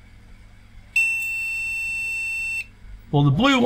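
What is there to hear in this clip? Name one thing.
A multimeter gives a steady beep.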